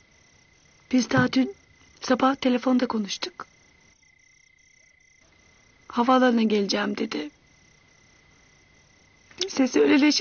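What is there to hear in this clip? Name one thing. A woman speaks tearfully nearby, her voice breaking.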